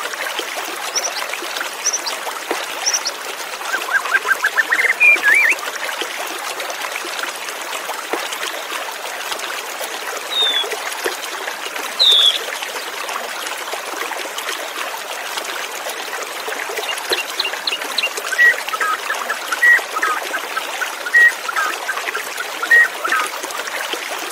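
A white-rumped shama sings in clear whistled phrases.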